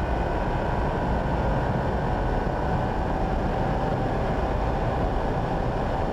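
Tyres rumble over wet tarmac.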